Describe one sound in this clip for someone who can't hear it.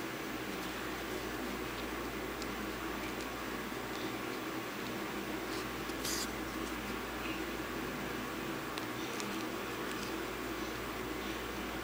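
Fingers softly rub and rustle against a knitted piece.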